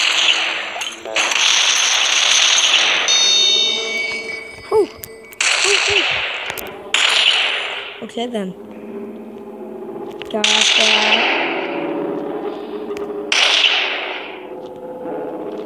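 Gunfire bursts loudly in rapid bursts.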